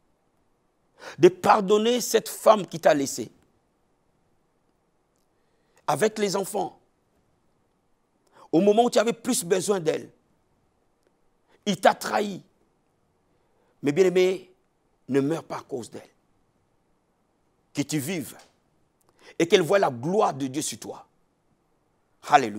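A man speaks forcefully and with emphasis into a close microphone, in short bursts with pauses.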